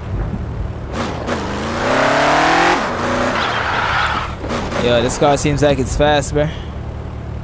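A car engine revs up and roars.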